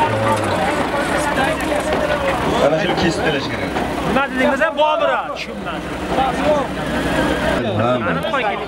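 A tractor engine idles nearby.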